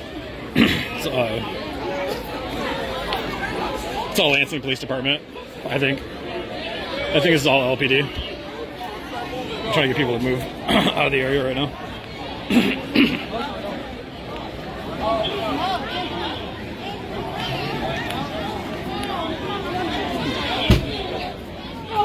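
A crowd of people talks and shouts outdoors.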